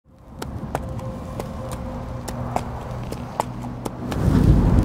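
Heavy armoured footsteps clank on hard ground.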